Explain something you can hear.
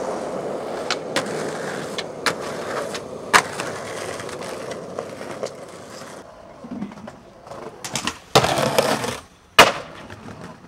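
A skateboard clatters as it lands on concrete.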